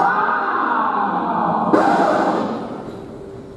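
A young man's voice calls out loudly over loudspeakers in a large hall.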